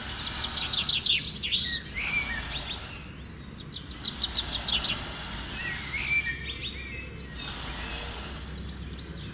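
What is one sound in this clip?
A stick scratches softly through sand.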